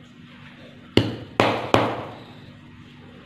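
A lump of damp soil thuds down onto a hard surface several times.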